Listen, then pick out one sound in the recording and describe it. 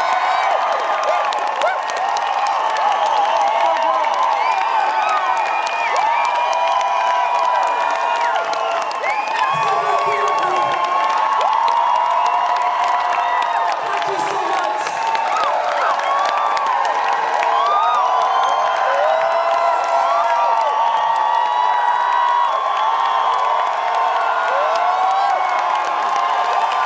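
A large crowd cheers and screams loudly in an echoing hall.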